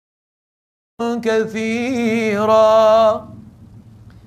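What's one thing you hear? An elderly man chants in a long, melodic, drawn-out voice through a microphone in an echoing room.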